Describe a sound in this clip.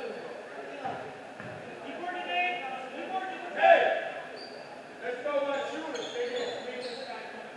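Young players call out and shout in a large echoing gym.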